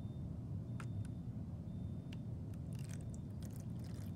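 Thick liquid glugs slowly out of a plastic bottle.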